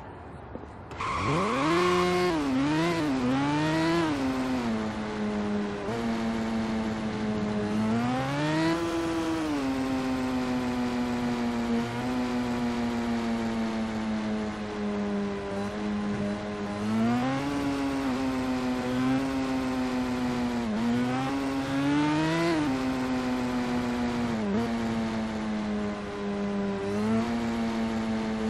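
A motorcycle engine starts and revs up and down.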